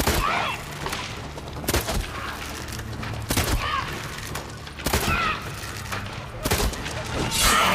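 A sword slashes and strikes a flying creature.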